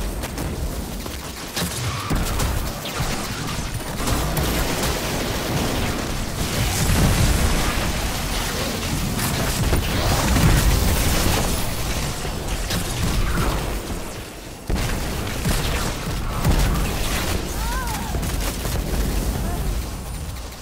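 Laser weapons fire and energy blasts crackle in a video game battle.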